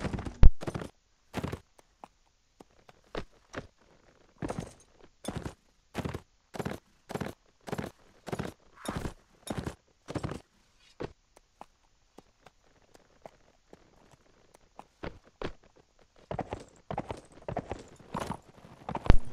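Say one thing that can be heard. A horse's hooves thud steadily on grass at a canter.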